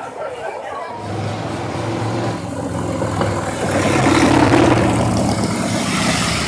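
A motorcycle engine rumbles as motorcycles ride slowly past, close by.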